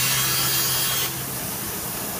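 A band saw cuts through wood with a loud whine.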